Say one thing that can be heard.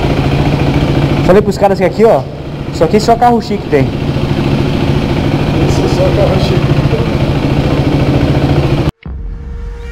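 A motorcycle engine idles and revs loudly.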